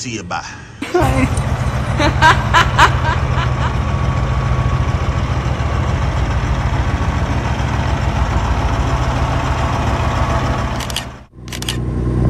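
Truck engines idle nearby with a deep, steady rumble.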